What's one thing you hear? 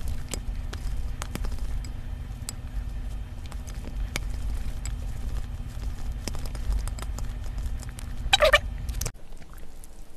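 Chopsticks clink and tap against a glass bowl while stirring noodles.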